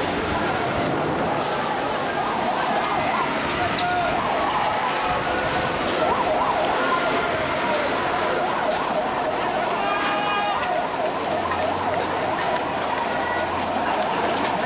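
A crowd of men shouts and chants outdoors.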